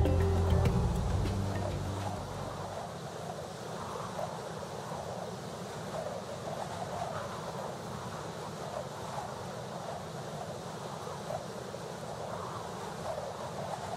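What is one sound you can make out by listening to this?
A small dragon's wings flap steadily in flight.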